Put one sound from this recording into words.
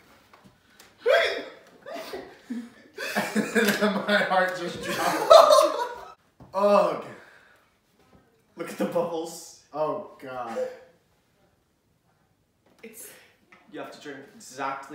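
A young woman laughs and talks.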